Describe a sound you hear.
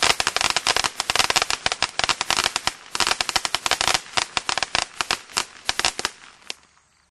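A firework fountain crackles and pops rapidly, then dies away.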